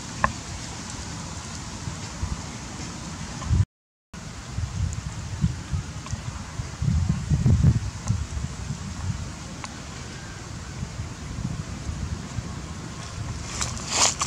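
Wind rumbles against the microphone outdoors.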